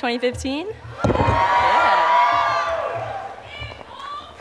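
A crowd cheers and laughs.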